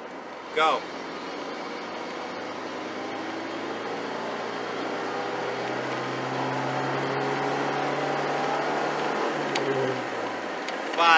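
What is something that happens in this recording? A car engine roars and rises in pitch as it accelerates hard, then drops off.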